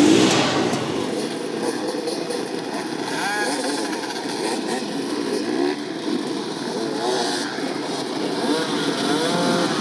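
A dirt bike engine idles close by.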